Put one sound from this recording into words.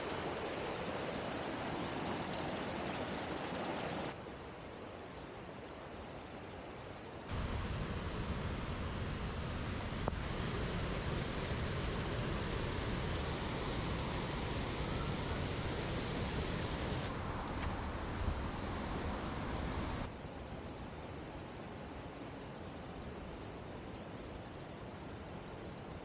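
Water rushes and gurgles over rocks in a stream.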